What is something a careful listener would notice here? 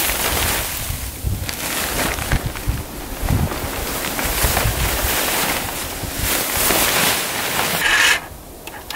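A plastic tarp rustles and crinkles as it is dragged off.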